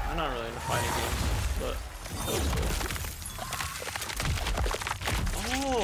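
Heavy blows and bone-crunching impacts land in a fight.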